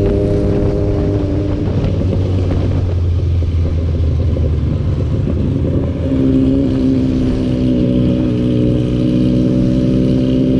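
A motorcycle engine hums steadily close by as it rides along a road.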